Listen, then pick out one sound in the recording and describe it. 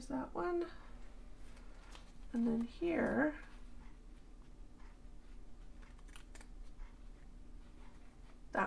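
Paper rustles and crinkles softly as pages are handled.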